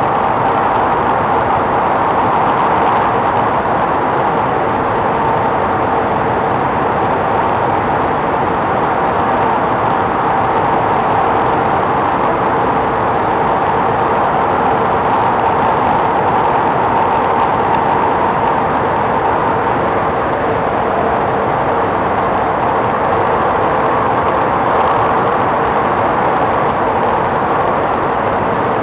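A train roars steadily at speed through a tunnel, with a droning hum.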